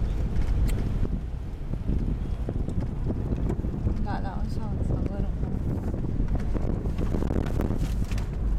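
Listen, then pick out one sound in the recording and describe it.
Tyres roll over sand with a low rumble.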